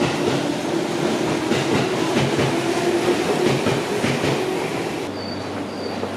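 A train rolls slowly out of a station with a low rumble.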